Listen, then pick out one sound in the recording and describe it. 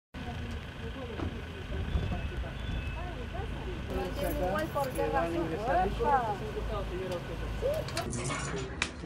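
Men talk quietly.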